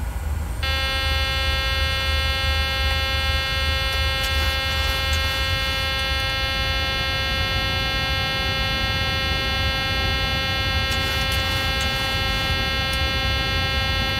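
Jet engines hum with a steady high whine.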